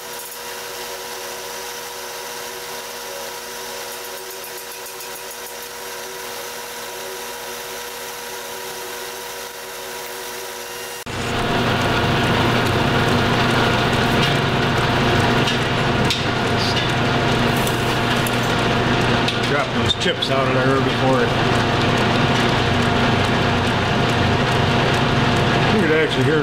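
A cutting tool scrapes and whines against turning metal.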